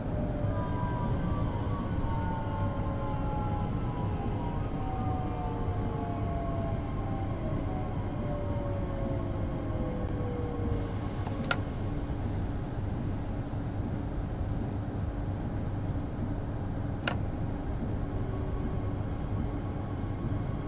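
A train rumbles steadily over the rails.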